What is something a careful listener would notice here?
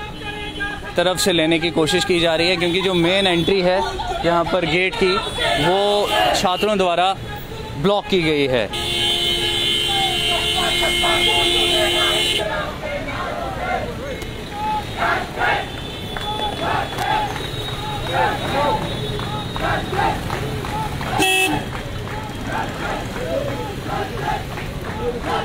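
Several men talk nearby, outdoors.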